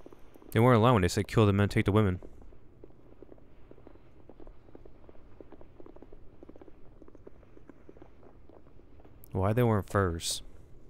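A man speaks in a low voice nearby.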